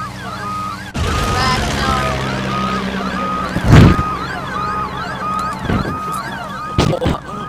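Wind rushes loudly during a fall through the air.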